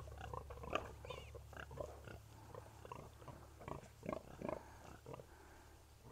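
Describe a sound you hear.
A sow grunts softly.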